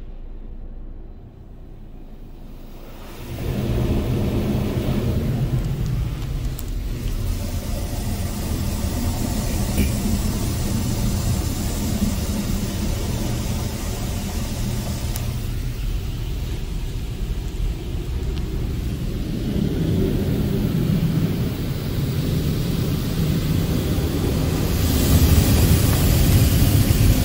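Heavy brushes rumble and slap against a car's body.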